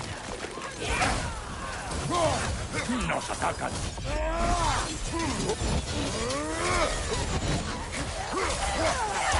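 Heavy blades slash and strike with thudding impacts.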